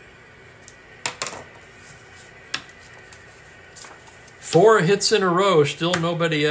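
A stiff card slides and taps on paper.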